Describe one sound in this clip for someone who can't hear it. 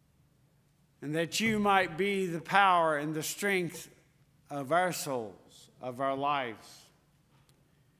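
An older man preaches through a microphone, with pauses between phrases.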